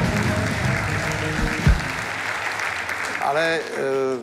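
A studio audience applauds.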